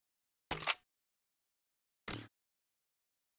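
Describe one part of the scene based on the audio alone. Menu selections click and chime.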